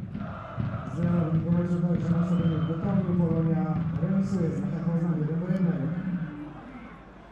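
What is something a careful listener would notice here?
A large crowd chants loudly in an open stadium.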